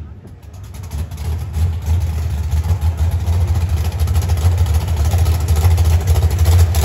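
A car engine rumbles loudly.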